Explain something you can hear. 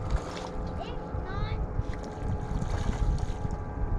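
A fish splashes in the water.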